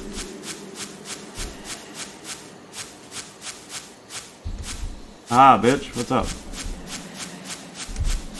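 Footsteps crunch steadily on grassy ground.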